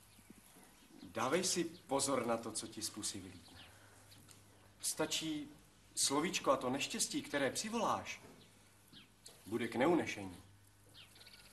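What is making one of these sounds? A young man speaks gently, close by.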